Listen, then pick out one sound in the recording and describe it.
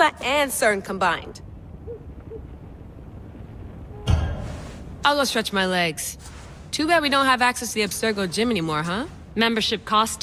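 A young woman speaks casually and with a light, joking tone.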